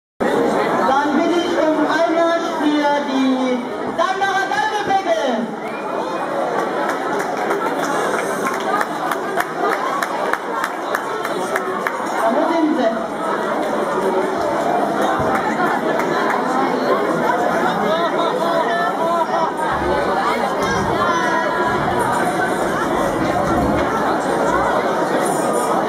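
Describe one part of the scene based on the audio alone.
A brass band plays loudly nearby.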